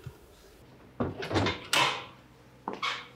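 A woman speaks sharply and indignantly, close by.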